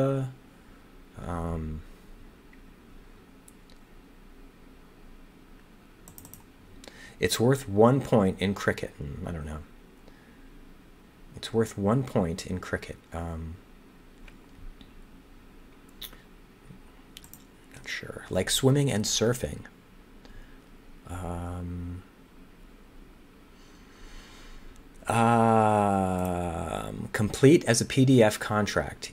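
A man talks calmly and thinks aloud into a close microphone, in short bursts with pauses.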